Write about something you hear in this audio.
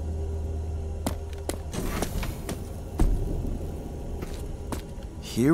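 Footsteps thud on a hard metal floor.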